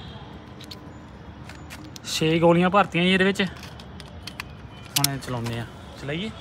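A toy pistol clicks as caps are loaded into it.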